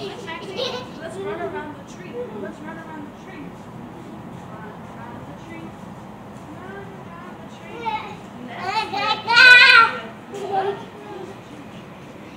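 A young child babbles and squeals excitedly nearby outdoors.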